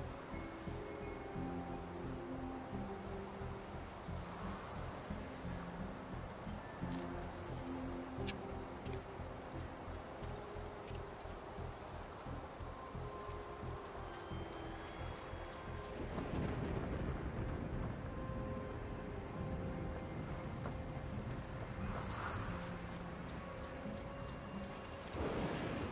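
Footsteps crunch slowly on gravel and stone.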